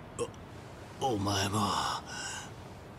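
A man speaks in a rough, strained voice close by.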